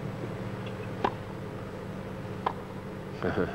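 A tennis ball is struck by a racket with sharp pops.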